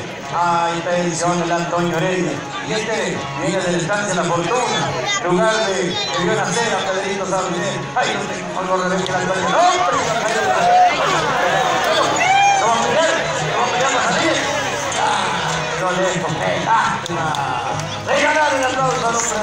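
A man talks with animation over loudspeakers outdoors.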